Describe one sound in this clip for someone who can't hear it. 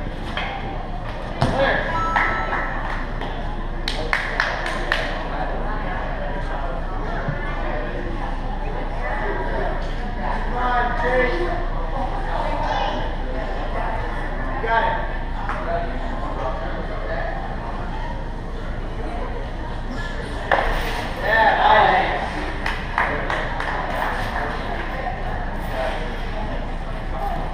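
Men and women chat nearby in a large echoing hall.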